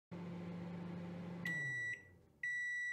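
A microwave oven hums steadily.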